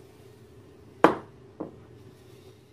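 A nut driver knocks against a metal amplifier chassis.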